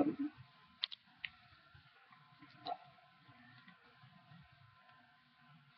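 A woman talks quietly and calmly into a nearby computer microphone.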